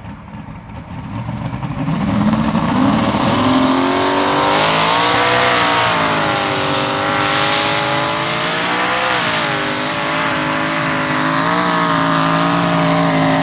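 A loud pulling tractor engine roars and revs up to a steady howl.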